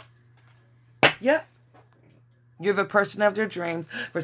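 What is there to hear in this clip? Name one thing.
A playing card is laid down on a pile of cards.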